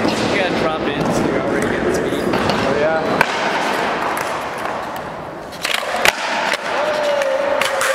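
Skateboard wheels roll and rumble across a concrete floor.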